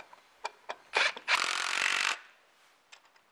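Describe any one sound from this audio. A power drill whirs briefly as it drives a screw.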